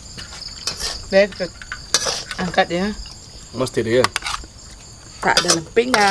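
A spoon scrapes against a metal pan.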